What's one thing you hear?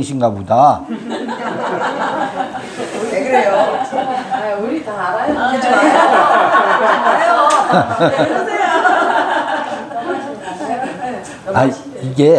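A middle-aged man laughs heartily.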